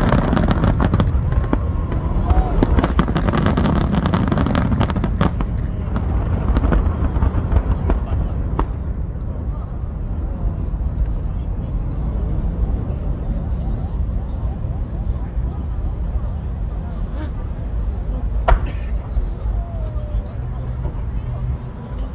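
Fireworks boom and crackle loudly in rapid bursts.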